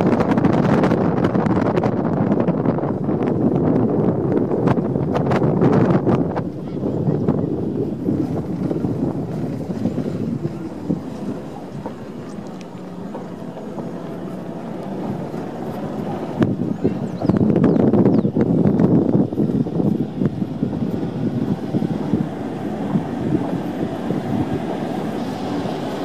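A vehicle engine rumbles steadily while driving on a rough dirt road.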